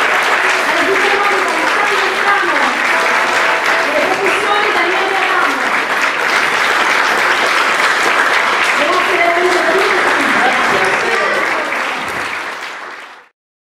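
An accordion plays.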